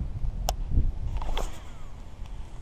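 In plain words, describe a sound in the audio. A fishing rod swishes through the air as a line is cast.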